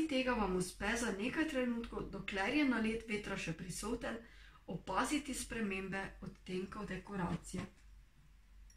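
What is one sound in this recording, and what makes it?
A young woman reads aloud calmly and close to a microphone.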